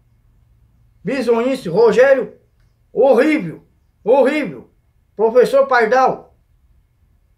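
A young man speaks with animation, close to a microphone, in short bursts.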